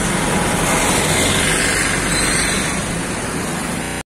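Car engines hum as cars pass by.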